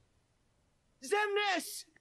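A young man calls out loudly.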